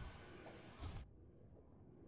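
A bright magical blast bursts with a sharp crash.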